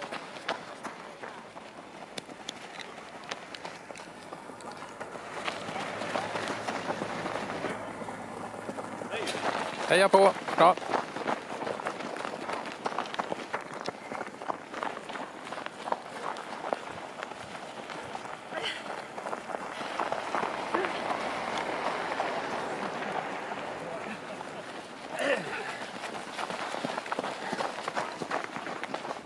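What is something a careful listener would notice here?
Runners breathe heavily as they pass close by.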